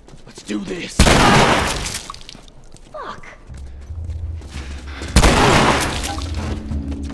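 A heavy blow lands with a loud crash.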